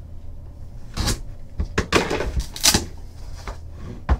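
A cardboard box lid slides and taps open.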